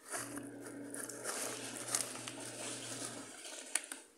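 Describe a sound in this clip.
Crunchy snacks pour out and patter onto a cloth.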